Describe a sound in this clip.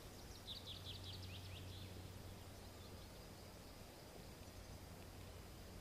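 Footsteps walk over a forest floor.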